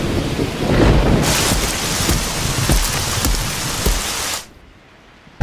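Heavy rain pours down and splashes on stone.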